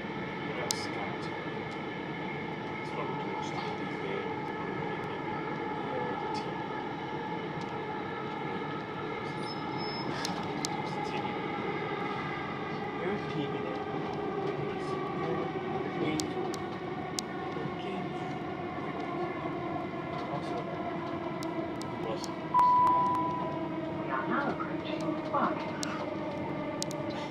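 A train hums and rumbles steadily along the tracks.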